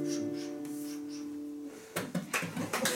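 An acoustic guitar chord rings out and fades.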